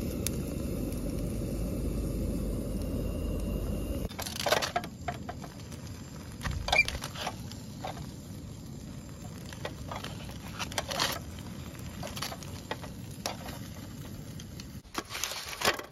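A gas stove burner roars steadily.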